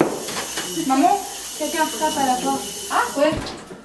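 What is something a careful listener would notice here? A young woman calls out loudly.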